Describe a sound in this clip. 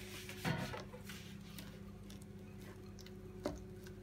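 Chopped chocolate pours from a bowl onto cake batter.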